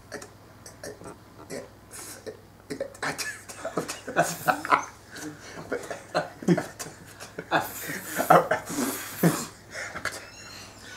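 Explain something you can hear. Several young men laugh together close by.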